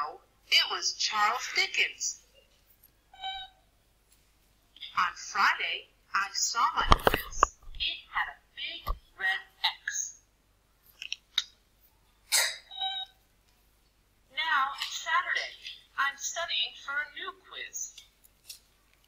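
A young boy speaks calmly and clearly, as if telling a story.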